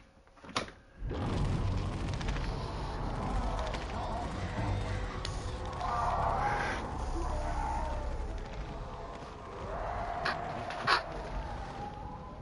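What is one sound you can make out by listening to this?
Fires roar and crackle with a low rumble.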